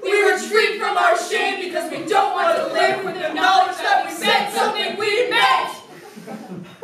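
Two young women and a young man sing together in harmony, close by.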